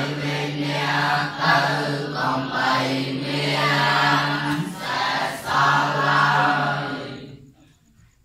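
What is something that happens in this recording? A large group of boys chants together in unison in an echoing room.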